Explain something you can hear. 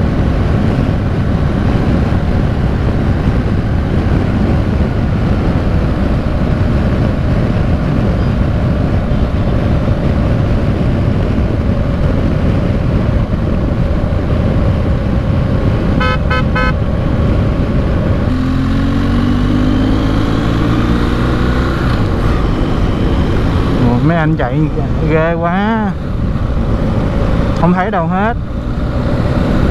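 A motorcycle engine hums and drones as it rides.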